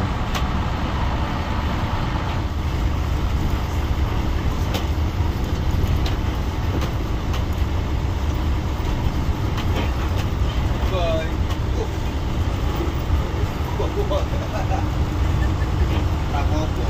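Loose parts rattle and knock inside a bus as it rolls over a rough road.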